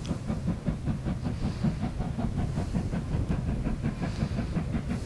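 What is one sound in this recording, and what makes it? A steam locomotive chuffs steadily in the distance.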